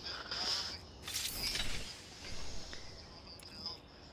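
A metal crate swings open with a clank.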